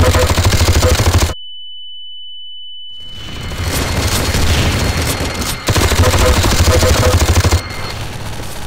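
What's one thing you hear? A minigun fires in rapid, rattling bursts.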